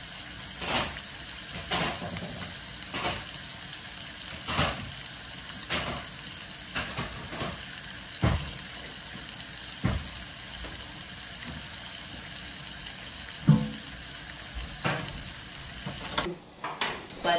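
Food sizzles and bubbles in pots on a stove.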